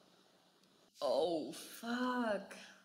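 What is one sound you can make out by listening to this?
A young man speaks close by, with animation.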